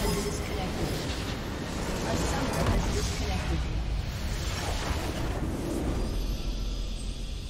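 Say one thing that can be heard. A structure explodes with a loud roaring blast.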